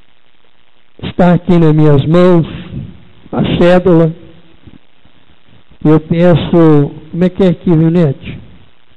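A young man speaks loudly into a microphone, heard through a loudspeaker in an echoing hall.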